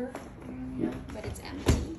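A cabinet door swings open.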